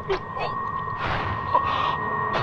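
A man shouts loudly.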